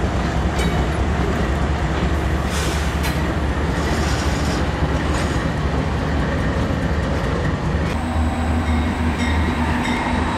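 A diesel locomotive engine rumbles deeply as a train rolls along the tracks.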